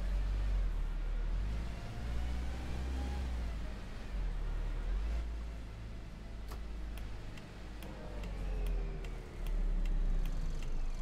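A bus engine hums and whines steadily as the bus drives along.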